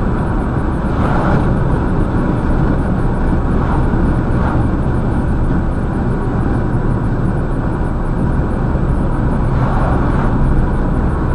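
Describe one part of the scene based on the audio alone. Oncoming vehicles whoosh past briefly.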